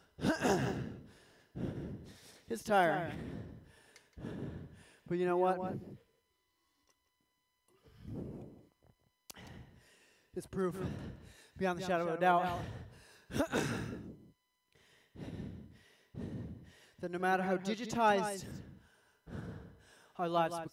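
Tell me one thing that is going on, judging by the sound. A man talks with animation close to a microphone, in a small echoing room.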